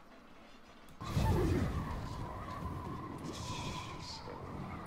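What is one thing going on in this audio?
Magic blasts rumble and crackle in a battle.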